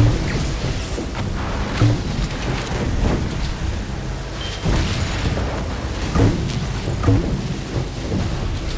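A small boat's motor buzzes as it skims across water.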